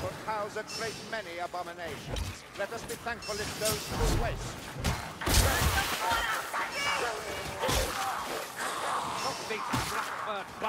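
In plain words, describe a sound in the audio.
Heavy weapons swing and strike with loud thuds.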